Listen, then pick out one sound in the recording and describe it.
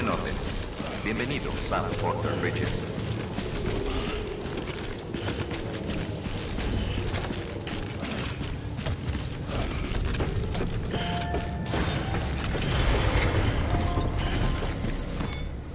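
Heavy footsteps thud steadily on a hard floor.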